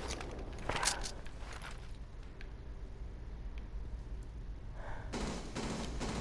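Footsteps tap on a hard surface.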